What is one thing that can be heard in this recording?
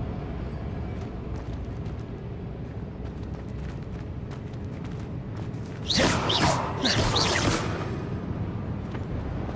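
Footsteps scuff and tap on stone.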